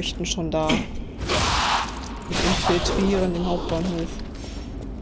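Blades swing and clash in a fight.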